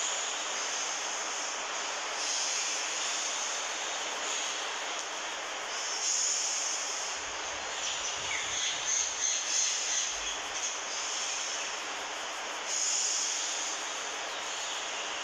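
A man breathes in and out forcefully through his nose.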